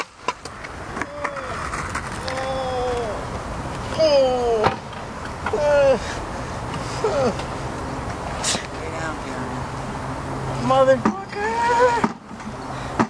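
A young man groans and talks in pain nearby.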